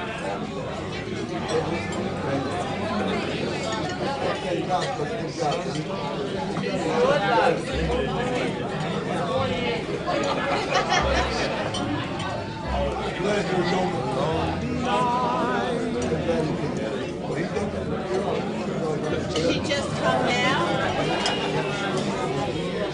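Dishes and cutlery clink on tables.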